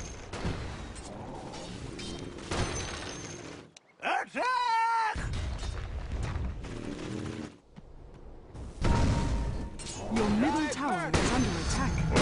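Weapons clash and spells crackle in a fight.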